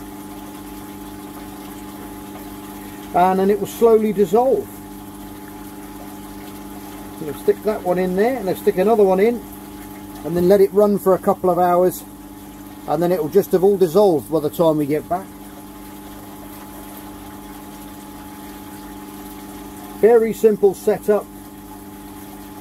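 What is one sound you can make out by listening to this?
Sand pours softly into water.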